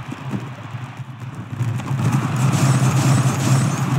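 A racer lands hard in the dirt with a thud.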